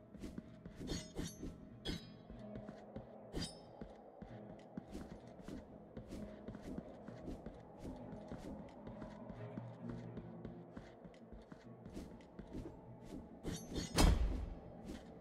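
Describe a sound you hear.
Swords clang and swish in quick slashes.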